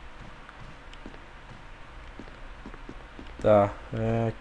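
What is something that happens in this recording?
Footsteps thud softly on a hard floor.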